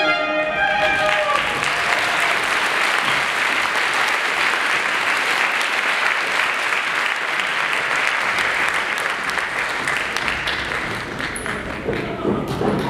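An audience applauds loudly in a large hall.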